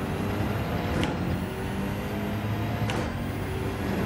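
A race car's gearbox clicks sharply as gears shift up.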